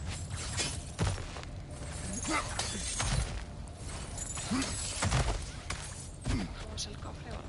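Heavy thuds land on rock.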